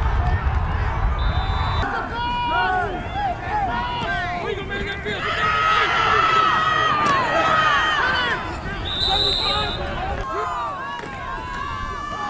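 A crowd in the stands cheers and shouts loudly.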